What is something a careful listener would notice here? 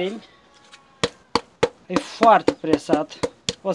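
Wooden slats knock and clatter against each other.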